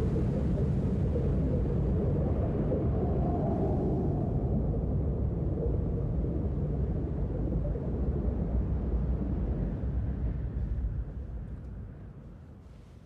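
Wind blows loudly outdoors.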